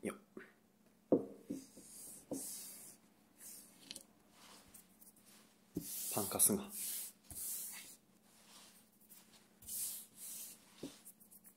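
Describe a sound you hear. Hands brush and rub across a wooden table.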